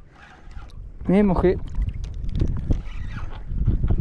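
A fishing reel whirs as its handle turns.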